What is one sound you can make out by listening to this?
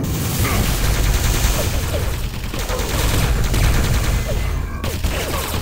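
Energy weapons fire with rapid fizzing zaps.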